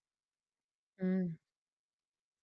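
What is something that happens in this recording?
A young woman gives a short hum close to a microphone.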